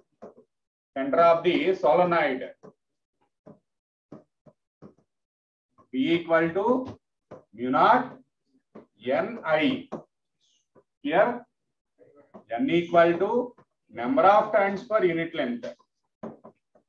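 A man speaks calmly into a close microphone, explaining in pauses.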